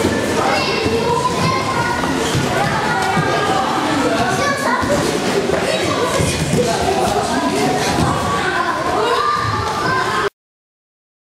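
Children shout and chatter excitedly in a large echoing hall.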